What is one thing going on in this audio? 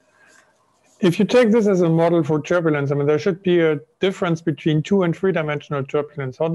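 An elderly man speaks calmly and loudly over an online call.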